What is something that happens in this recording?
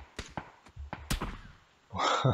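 A single rifle shot cracks sharply.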